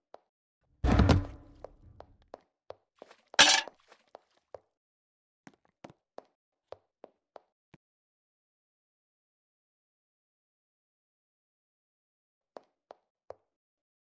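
Quick footsteps tap across a hard floor.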